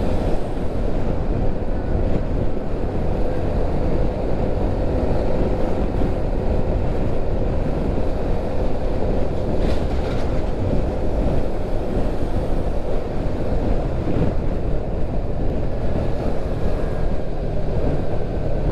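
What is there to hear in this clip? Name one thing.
Wind rushes loudly past a moving vehicle.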